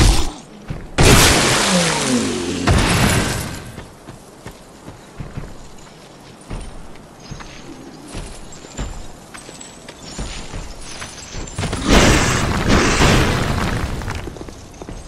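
A sword clashes and slashes against an enemy.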